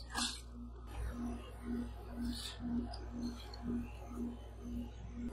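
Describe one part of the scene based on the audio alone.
Dry chips crunch and crackle as they are crushed.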